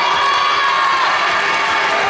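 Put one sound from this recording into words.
A volleyball bounces on a wooden floor.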